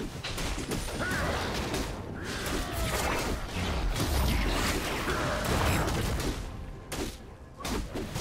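Magic blasts crackle and boom as a huge monster is struck in battle.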